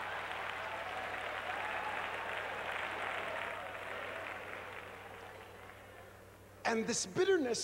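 A large crowd cheers and calls out in a big echoing hall, then fades.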